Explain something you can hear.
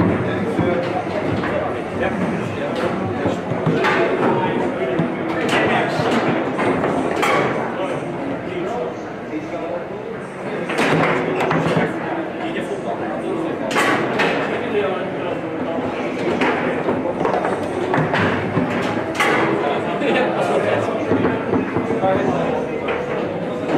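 A foosball ball cracks against the plastic figures and table walls.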